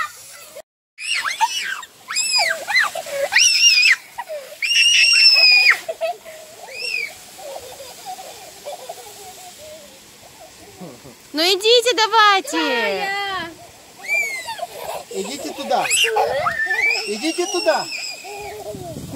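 Young girls shriek and squeal with excitement outdoors.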